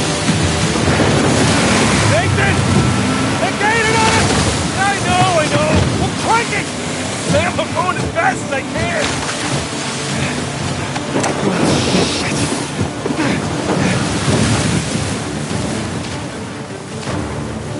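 Stormy waves crash and roar loudly.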